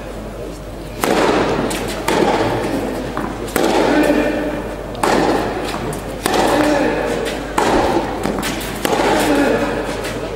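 A tennis ball is struck sharply by a racket, again and again in a rally.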